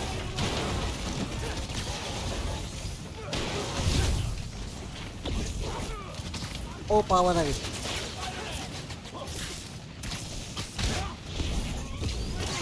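Heavy blows and explosions thud and crash in a fight.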